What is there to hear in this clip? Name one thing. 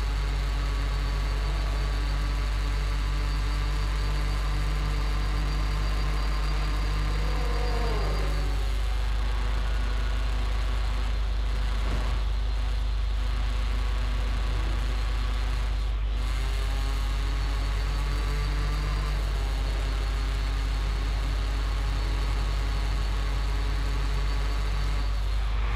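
A car engine hums steadily as the car speeds along.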